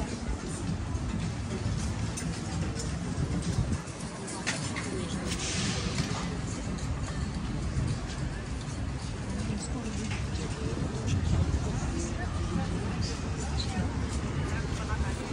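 Men and women chat in passing outdoors.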